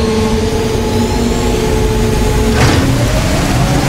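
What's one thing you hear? A steady mechanical whine hums, then stops with a sharp hiss.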